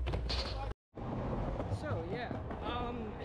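A young man talks with animation close by, outdoors in wind.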